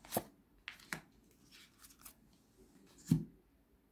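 Cards tap softly as they are laid down on a table.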